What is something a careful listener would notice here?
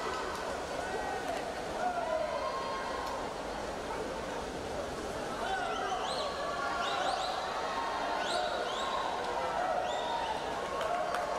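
A large crowd cheers and shouts in an echoing indoor hall.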